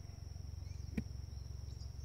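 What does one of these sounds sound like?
A golf club strikes a ball with a sharp click.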